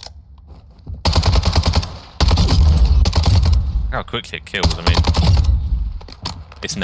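A rifle fires in loud rapid bursts.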